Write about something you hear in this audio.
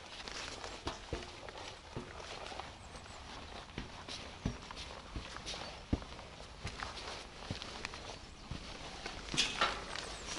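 Boots clank on metal ladder rungs.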